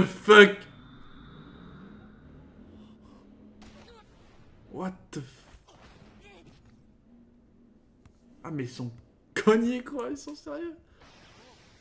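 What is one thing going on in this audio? A young man speaks casually and close by, with pauses.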